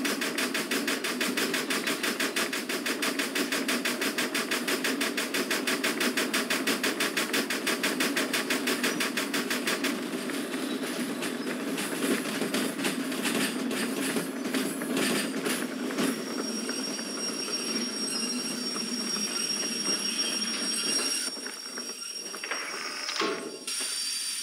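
Train wheels rumble and clack along the rails.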